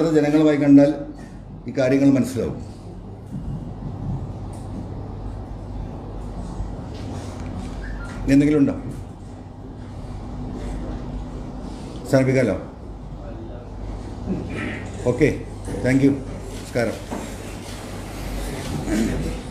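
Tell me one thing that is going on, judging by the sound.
A middle-aged man speaks into microphones in short bursts, with pauses between phrases.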